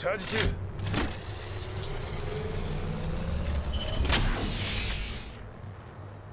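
A game character's shield battery charges with a rising electric whine.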